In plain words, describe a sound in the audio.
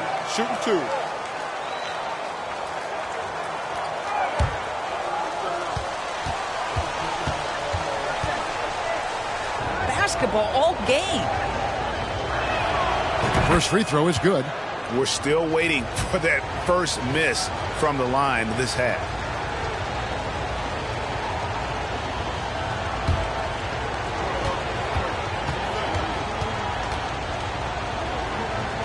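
A large crowd murmurs and chatters in an echoing arena.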